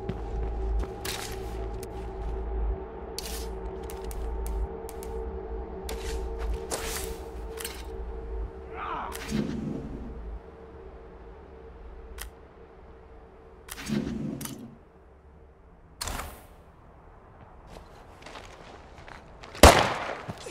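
Footsteps fall on grass.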